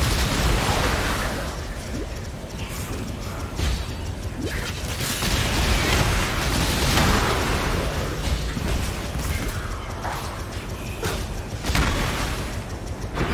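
Magical blasts boom with deep rumbles.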